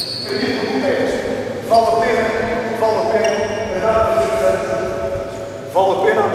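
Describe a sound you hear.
A man speaks loudly to a crowd in a large echoing hall.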